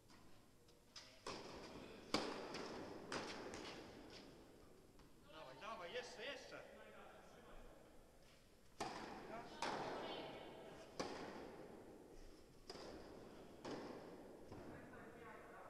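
Tennis balls are struck with rackets, with sharp pops echoing through a large indoor hall.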